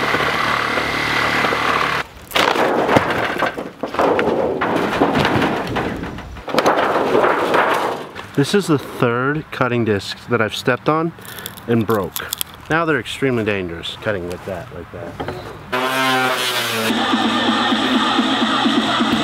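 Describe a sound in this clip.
Debris and boards scrape and clatter as a man pulls apart a wrecked trailer.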